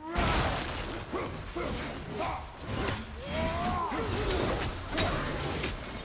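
Heavy blows strike with sharp thuds during a fight.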